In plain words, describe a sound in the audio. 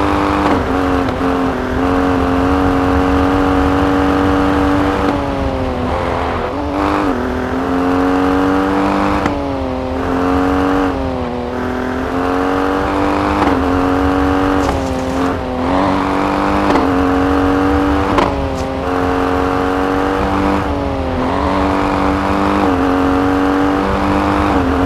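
Tyres crunch over a snowy gravel track.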